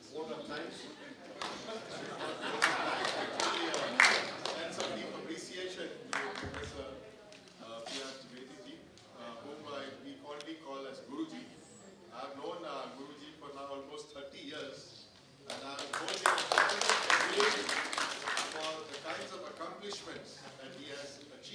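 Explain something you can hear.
A middle-aged man speaks calmly into a microphone over loudspeakers.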